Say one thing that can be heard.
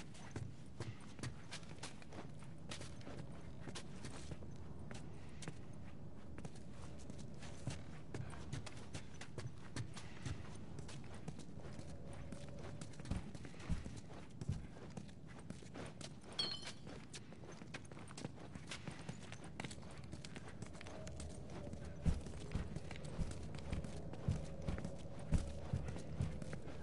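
Footsteps thud on wooden stairs and hard floors.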